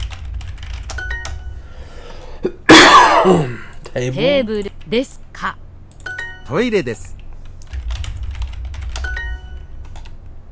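Short computer chimes ring out.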